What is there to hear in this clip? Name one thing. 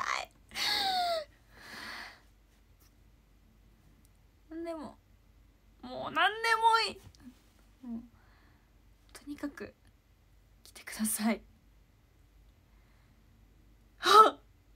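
A young woman talks animatedly in bursts close to a microphone, with pauses.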